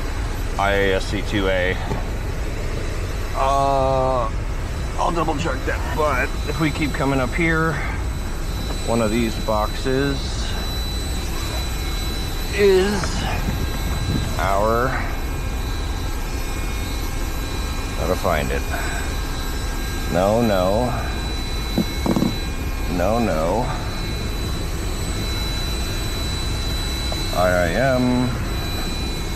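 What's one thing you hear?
Electrical equipment hums steadily with a faint high whine.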